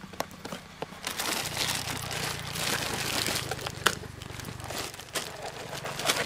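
Plastic candy packets rustle and crinkle in a cardboard box.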